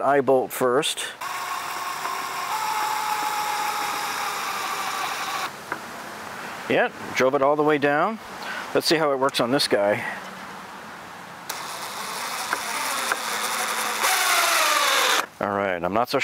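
A cordless drill whirs steadily and winds down.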